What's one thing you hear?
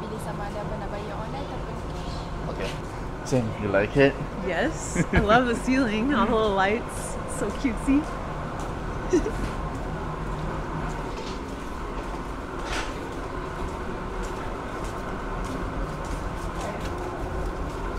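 A low murmur of people talking fills a busy indoor space.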